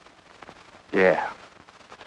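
A woman answers briefly and quietly.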